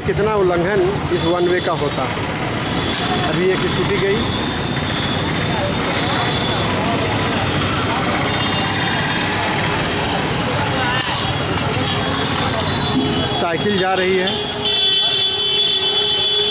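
Horns honk loudly nearby, again and again.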